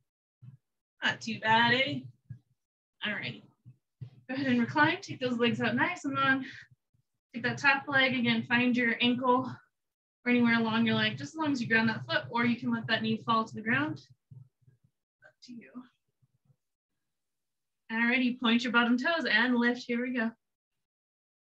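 A woman speaks calmly and steadily, giving instructions close by.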